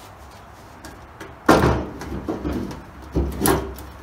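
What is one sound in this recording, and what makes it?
A hand pats a metal box with dull thumps.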